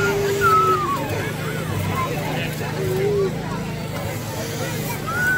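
Young children call out in high voices nearby.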